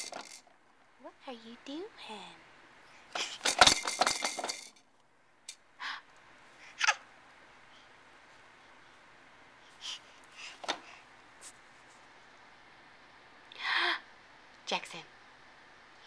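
A baby babbles and coos up close.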